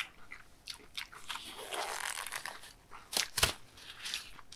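A man peels off a rubber glove with a stretching squeak.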